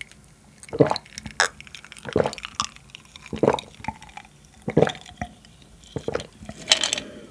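A young man gulps a drink in loud swallows close to a microphone.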